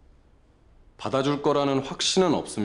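A young man speaks calmly and quietly, close by.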